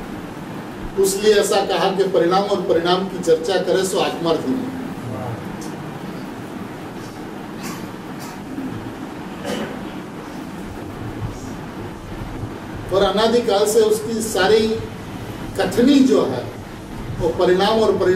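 A middle-aged man speaks calmly and close into a microphone, in bursts with pauses.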